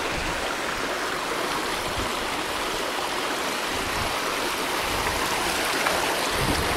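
Wind blows steadily outdoors, rumbling in gusts.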